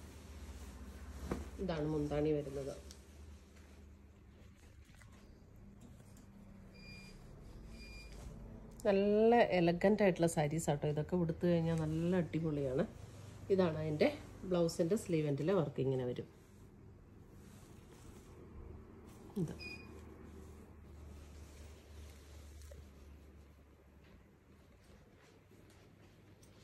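Cloth rustles as fabric is unfolded and handled.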